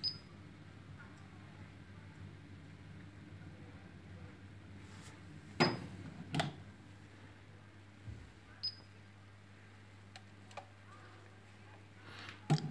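A microwave oven hums steadily.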